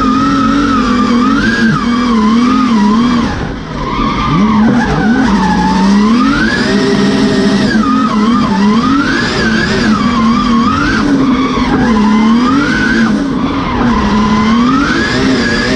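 A race car engine roars loudly from inside the cabin, revving up and down through the gears.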